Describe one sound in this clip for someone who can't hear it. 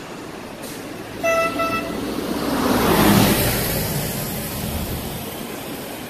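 A bus drives past close by with a rising roar.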